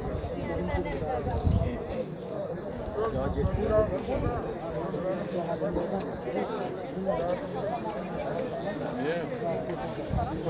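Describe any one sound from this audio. A crowd of men and women talk and shout over one another outdoors.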